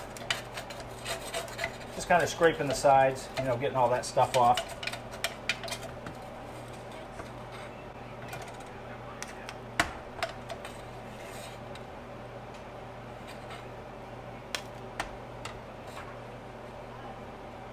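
Small metal parts clink and tap against metal.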